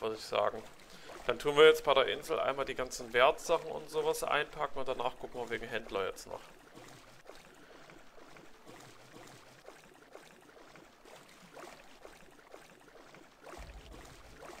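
Water laps and splashes gently around a swimmer.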